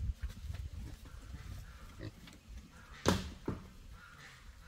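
A machete chops into wood with sharp knocks.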